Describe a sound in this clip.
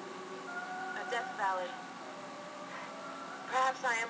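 A young woman speaks calmly up close.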